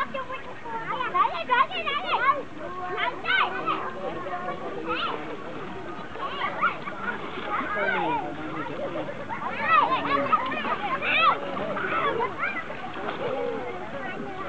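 Water laps gently around a moored boat.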